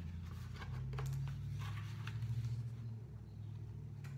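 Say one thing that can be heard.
Pages of a board book turn.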